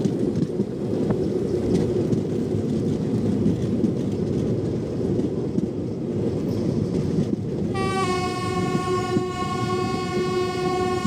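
A train rumbles steadily along the tracks with a close clatter of wheels.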